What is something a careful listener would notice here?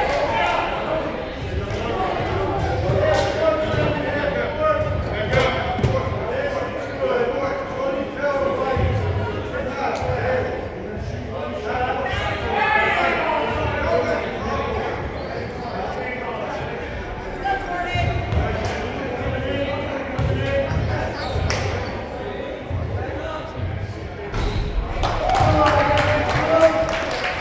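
Players and spectators talk and call out in a large echoing gym.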